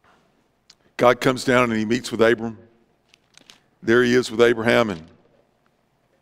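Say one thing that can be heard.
A middle-aged man speaks calmly through a microphone in a large room.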